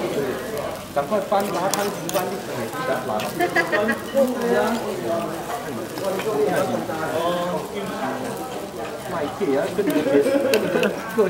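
A metal spoon scrapes and clinks against a stone bowl.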